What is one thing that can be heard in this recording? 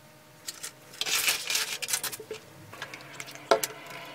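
Thick liquid glugs as it pours from a bottle.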